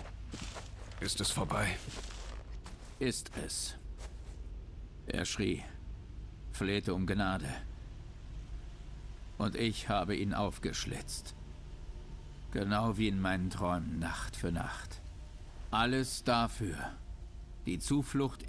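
A young man speaks in a low voice.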